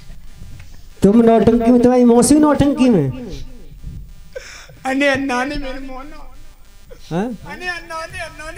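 A man speaks loudly through a handheld microphone and loudspeaker.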